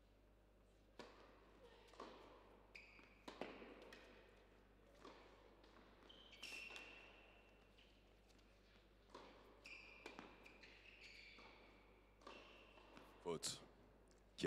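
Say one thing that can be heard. A tennis ball bounces on a hard court in a large echoing hall.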